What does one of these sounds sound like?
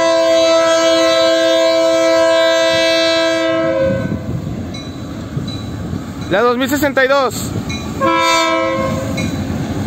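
A locomotive horn blows loud, long blasts.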